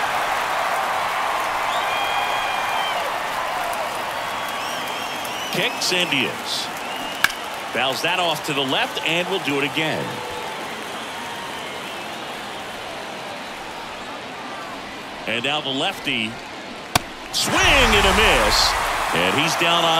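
A crowd murmurs and cheers in a large open stadium.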